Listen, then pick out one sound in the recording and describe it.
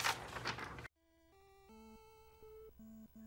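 Simple beeping video game music plays.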